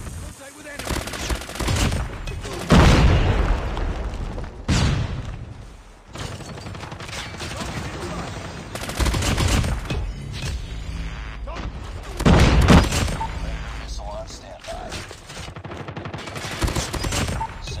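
A video game automatic rifle fires in rapid bursts.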